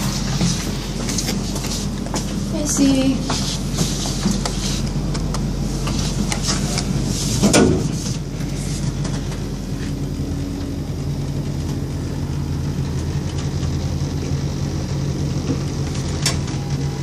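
An elevator hums steadily as it runs.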